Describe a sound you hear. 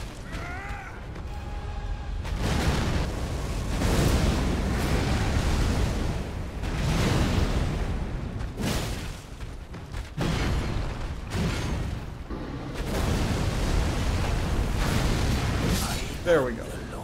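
Heavy blades clash and strike.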